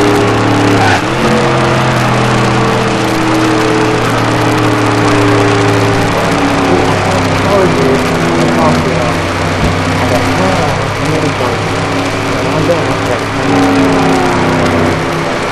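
Other race cars' engines drone nearby.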